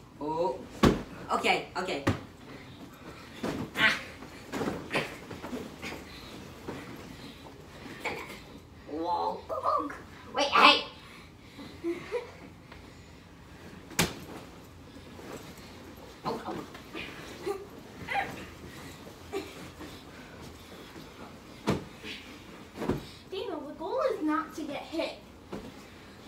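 Pillows thump against bodies.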